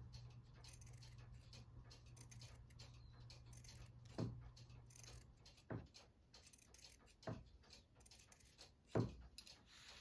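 Scissors snip through soft fabric.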